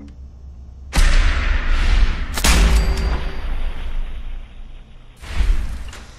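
A weapon fires a long, roaring beam.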